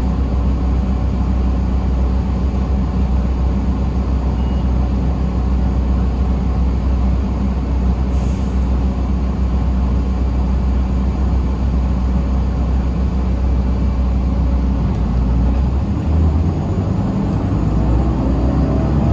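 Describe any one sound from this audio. A bus engine rumbles steadily from inside the moving bus.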